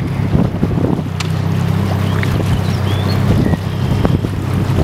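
A small outboard motorboat hums past.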